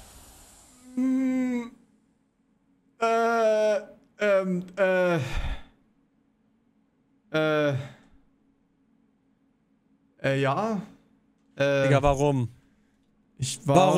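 A young man speaks into a microphone close up, in short animated bursts.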